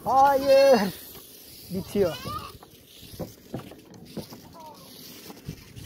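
Goats bleat loudly nearby.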